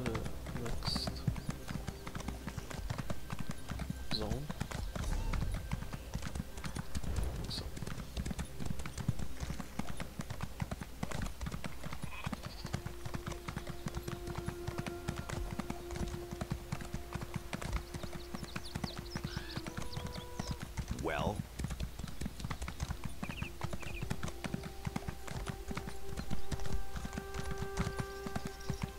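A horse gallops steadily, hooves pounding on hard ground.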